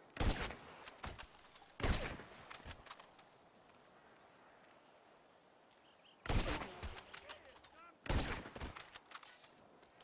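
Sniper rifle shots crack loudly and echo away.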